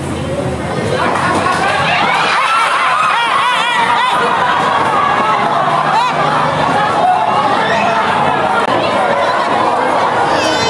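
A crowd of people shout and cry out excitedly close by.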